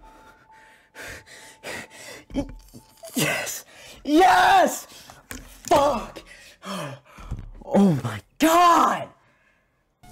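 A young man shouts and screams with excitement close to a microphone.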